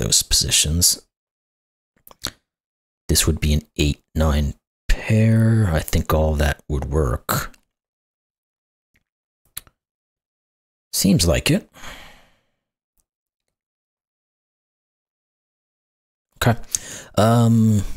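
A middle-aged man talks calmly and thoughtfully into a close microphone, with pauses.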